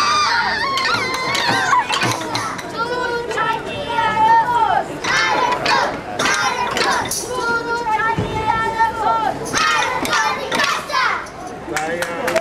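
A tambourine jingles and shakes.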